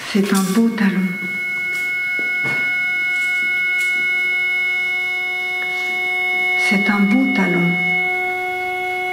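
A middle-aged woman speaks in short phrases through a microphone.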